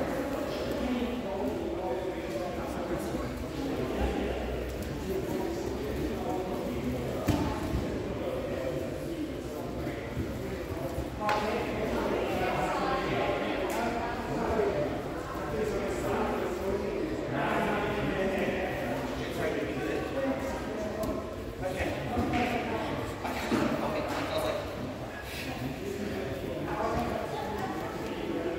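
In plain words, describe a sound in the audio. Many people talk and chatter throughout a large echoing hall.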